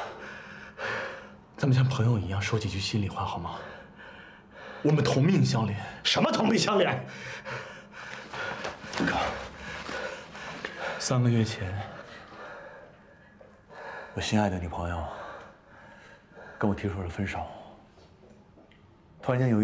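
A young man pleads earnestly, close by.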